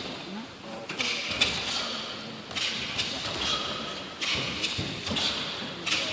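Two men shout sharply as they spar, echoing in a large hall.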